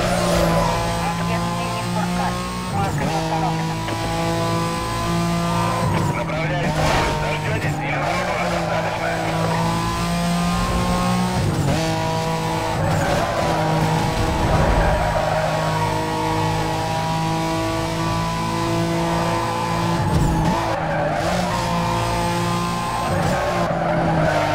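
A car engine roars at high speed, rising in pitch and dropping with each gear change.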